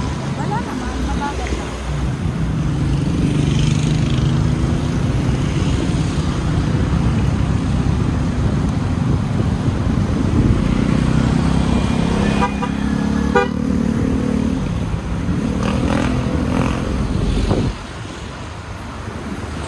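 Tyres rumble on a paved road.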